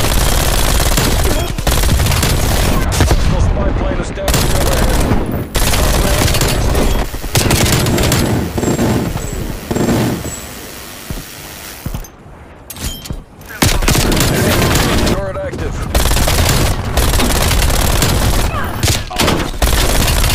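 Automatic rifle gunfire rattles.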